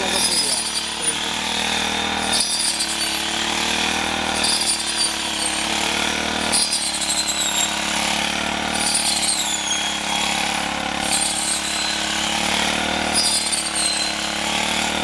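A small petrol engine drones steadily close by.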